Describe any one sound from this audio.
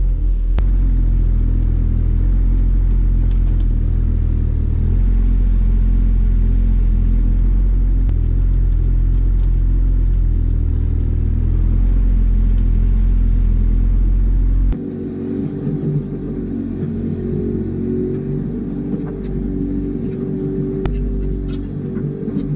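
Soil and stones scrape and tumble from an excavator bucket.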